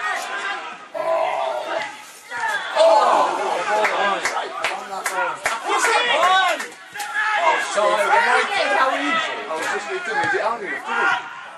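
Spectators in a stand shout and cheer outdoors.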